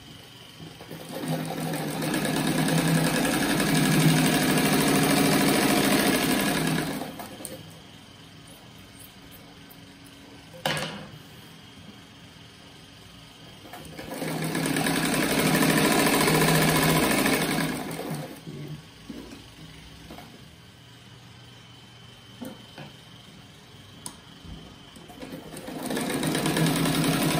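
A sewing machine whirs as it stitches in bursts.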